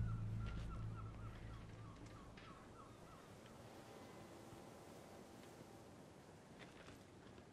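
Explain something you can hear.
Footsteps walk on a wet street.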